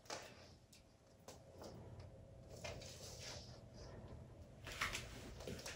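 Claws click and scrape on a wooden floor as a lizard walks.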